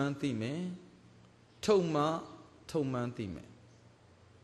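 A group of men chant together loudly in a large echoing hall.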